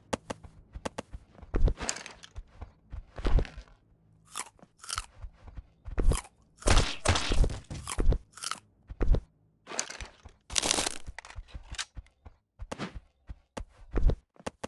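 An axe knocks against wood.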